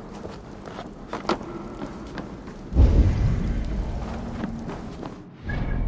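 Footsteps thud on stone and wooden steps.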